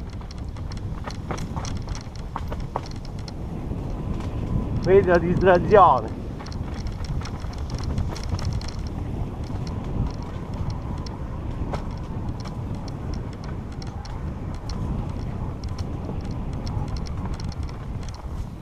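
A bike frame rattles and clatters over bumps.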